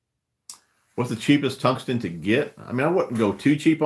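A man talks calmly and close to the microphone.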